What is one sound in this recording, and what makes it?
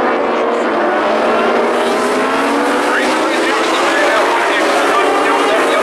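Several race car engines roar loudly around a track.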